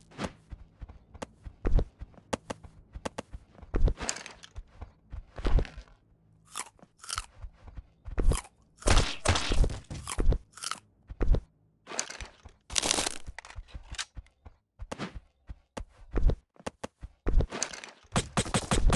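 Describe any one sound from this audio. Footsteps thud quickly on sand and wooden boards.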